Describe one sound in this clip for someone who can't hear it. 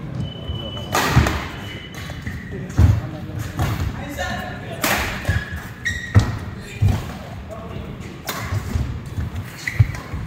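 Rackets strike a shuttlecock back and forth in a large echoing hall.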